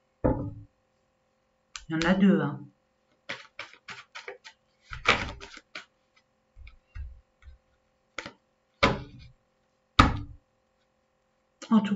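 Cards rustle and snap while being shuffled.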